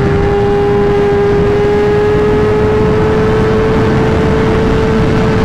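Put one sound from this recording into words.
A motorcycle engine hums steadily at high speed, its pitch slowly rising.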